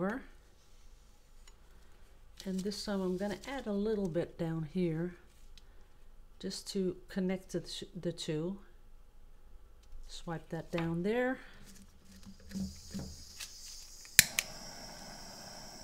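Wet paper lifts softly off a layer of paint.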